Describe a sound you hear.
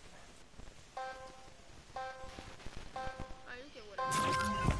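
A game's countdown beeps in short, even tones.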